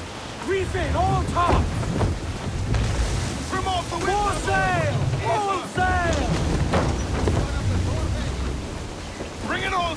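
Rain pours down heavily on a wooden deck.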